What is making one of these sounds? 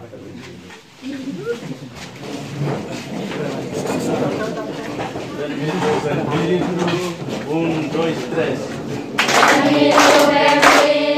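A group of young people shout and chant together.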